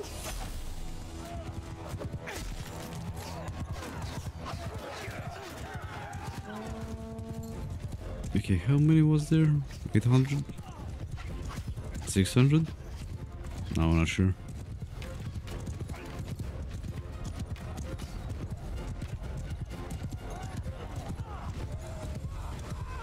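Horses' hooves thunder as cavalry gallops across open ground.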